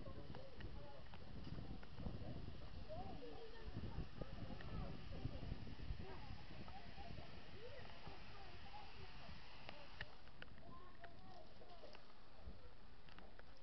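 Steam hisses loudly from a locomotive.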